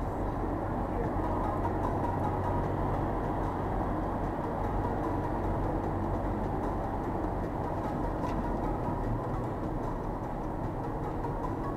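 Tyres roar steadily on the road surface.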